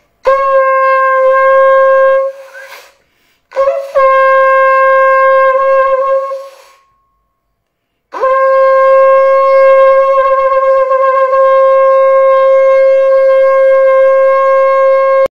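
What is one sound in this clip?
A man blows long, steady blasts on a horn, close by.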